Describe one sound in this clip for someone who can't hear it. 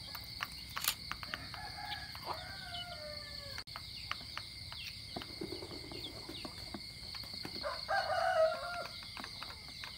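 Chickens cluck softly now and then.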